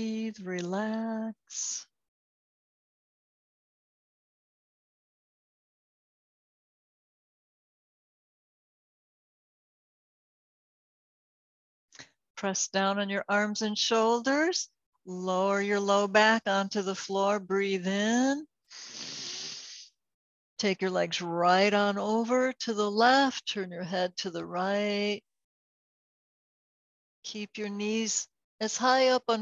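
A woman speaks calmly and slowly, close by, with long pauses.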